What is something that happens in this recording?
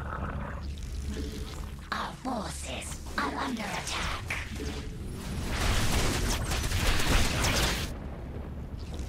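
Alien creatures screech and clash in a fight, with bursts and crackles.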